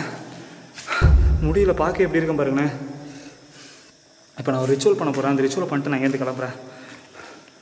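A young man speaks with feeling close to the microphone.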